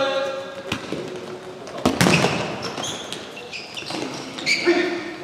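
Players' shoes squeak sharply on the court in a large echoing hall.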